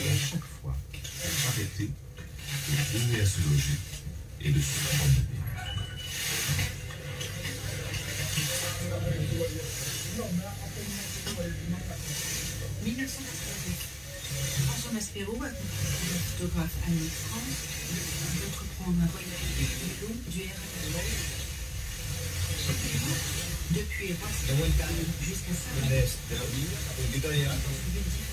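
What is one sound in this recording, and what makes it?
A radio receiver plays an FM station through loudspeakers, with hiss and crackle.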